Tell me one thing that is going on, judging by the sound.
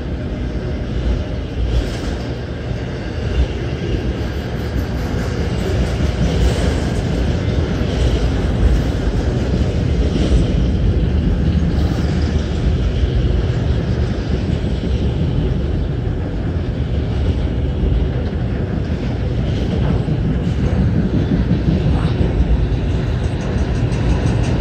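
A freight train rumbles steadily past close by.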